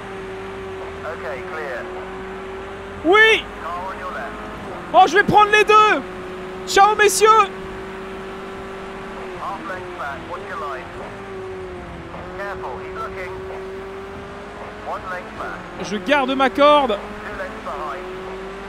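A young man talks through a microphone with animation, in short bursts.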